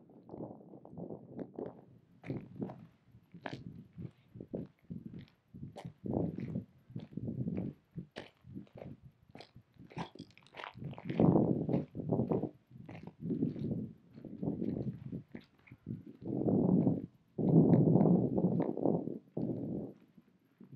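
Footsteps crunch on a stony trail.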